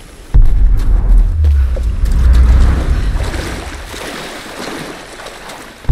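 Water splashes as someone wades.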